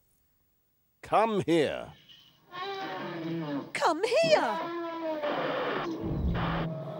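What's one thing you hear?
A woman speaks and laughs with animation, close by.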